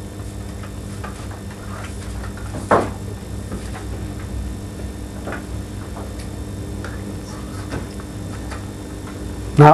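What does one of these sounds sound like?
Pens scratch softly on paper.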